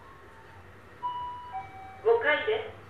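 An elevator chime rings on arrival.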